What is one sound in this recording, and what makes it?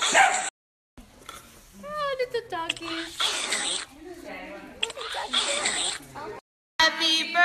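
A second young woman talks and laughs close by.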